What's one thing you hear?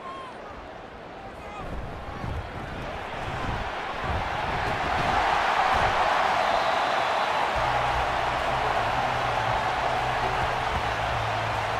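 A large stadium crowd cheers and roars, swelling louder.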